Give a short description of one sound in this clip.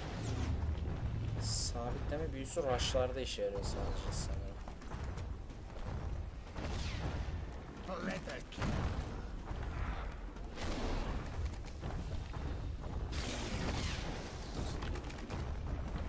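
Electric magic crackles and sizzles.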